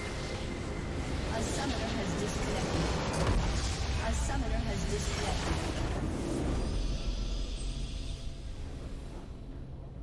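A large crystal bursts apart with a loud, rumbling explosion.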